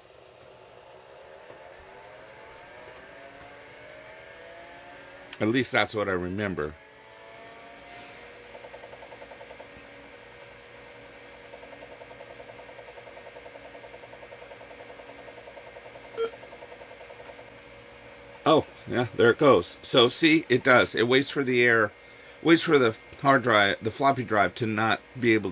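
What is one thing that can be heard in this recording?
An old computer hums steadily.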